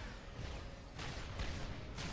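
A laser weapon fires with a sharp zap.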